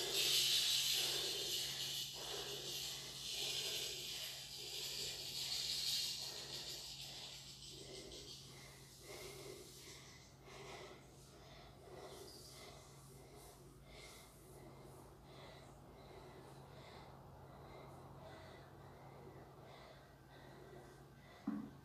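Clothing rustles softly against the floor as a person stretches.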